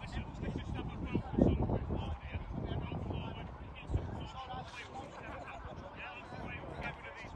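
Young men call out to each other in the distance, outdoors in wind.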